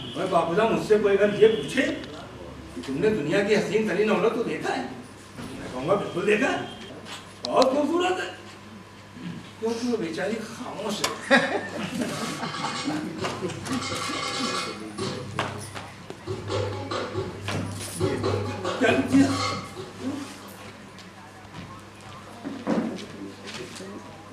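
A man speaks with feeling on a stage, heard from across a hall.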